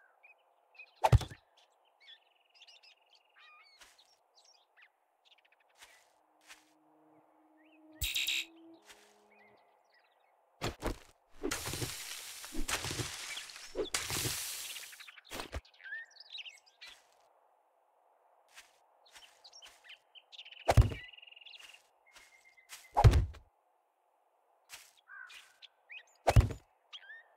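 Dull thuds sound as small plants are set in the ground.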